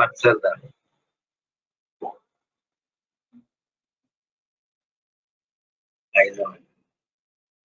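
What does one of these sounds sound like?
A middle-aged man speaks through an online call.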